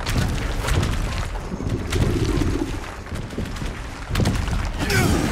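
A huge creature stomps and thrashes with deep heavy thuds.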